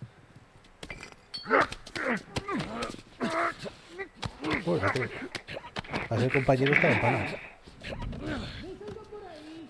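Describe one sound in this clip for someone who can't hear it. A man chokes and gasps close by during a struggle.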